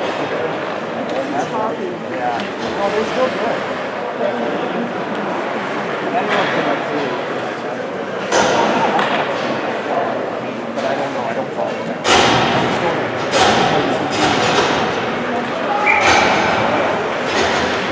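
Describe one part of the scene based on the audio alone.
Spectators chatter and call out nearby.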